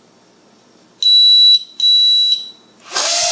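A small drone's propellers whir in two short bursts.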